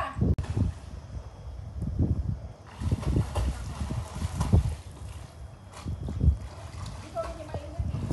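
Water splashes as a swimmer kicks and strokes close by.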